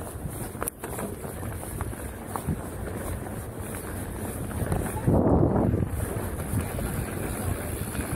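Wind rushes past a fast-moving rider.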